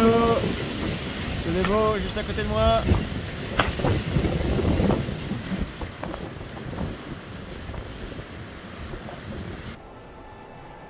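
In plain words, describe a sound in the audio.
Wind buffets a microphone outdoors at sea.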